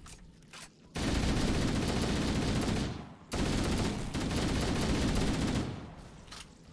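Rapid automatic gunfire rattles loudly in bursts.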